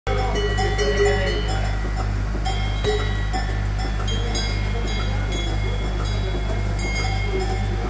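Cows shift and stir in their stalls.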